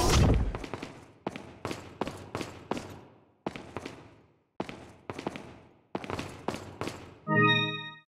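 Footsteps clack on a hard floor.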